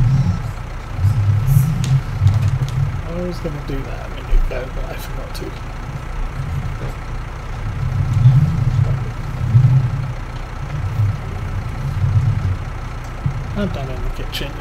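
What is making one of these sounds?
A tractor engine hums as the tractor drives slowly.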